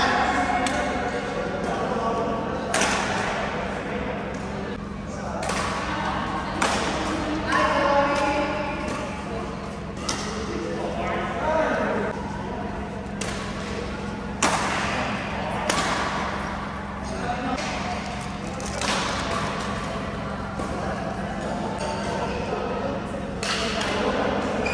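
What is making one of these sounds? Shuttlecocks are struck with sharp pops of rackets in a large echoing hall.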